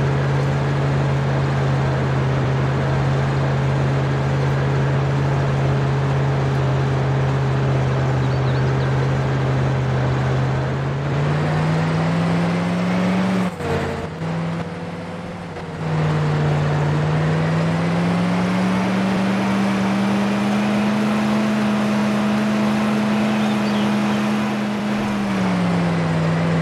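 A vehicle engine drones steadily, rising in pitch as it speeds up and dropping as it shifts gears.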